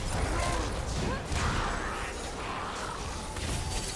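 Game spells and weapon hits burst and clash in quick succession.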